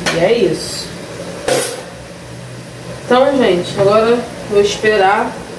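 Utensils clink against a pot.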